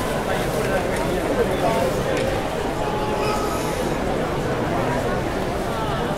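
A large indoor crowd murmurs and chatters steadily.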